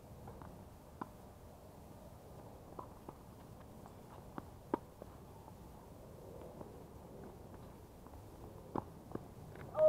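Tennis balls are struck with rackets, in sharp pops.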